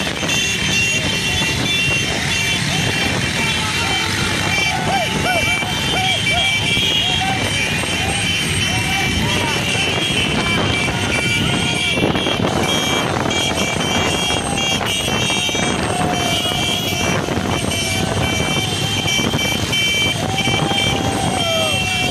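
A crowd of people shout and cheer outdoors.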